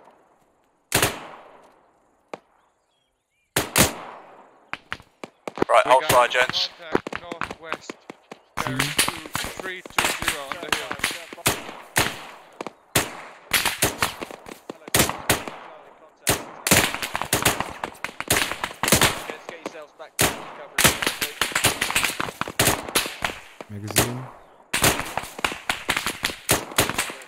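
A rifle fires shot after shot, each crack echoing across open ground.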